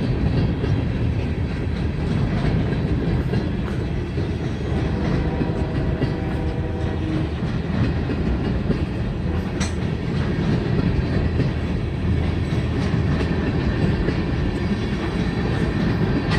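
A freight train rumbles and clatters steadily past on the tracks.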